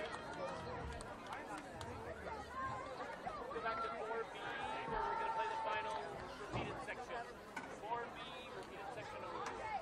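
A crowd of people chatter and call out outdoors, heard from a distance.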